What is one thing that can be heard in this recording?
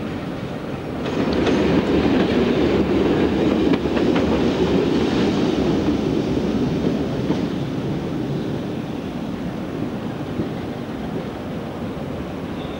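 A diesel train rumbles slowly past, its engine droning.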